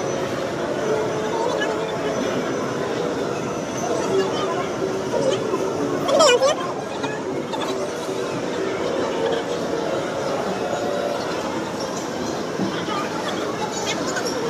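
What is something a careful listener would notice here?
A crowd of children and adults chatter and shout in a large echoing hall.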